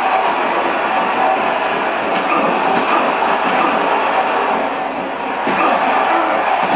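A crowd cheers and roars steadily.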